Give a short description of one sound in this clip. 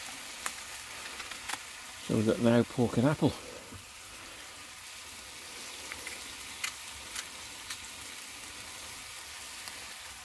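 Meat sizzles and crackles in a hot pan.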